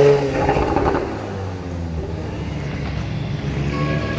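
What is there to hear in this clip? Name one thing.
A bus engine rumbles as it passes.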